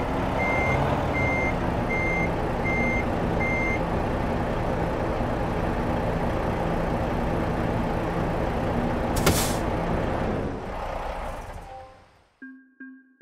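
A truck engine idles with a low, steady rumble, then shuts off.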